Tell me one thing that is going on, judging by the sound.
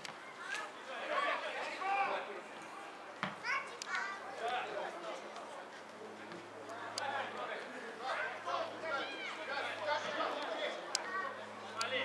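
Football players shout to each other across an open outdoor field.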